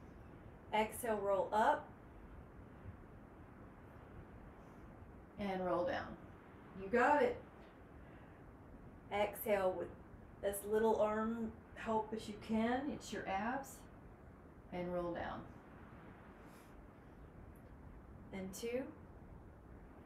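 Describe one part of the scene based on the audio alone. A young woman speaks calmly in short phrases, close by.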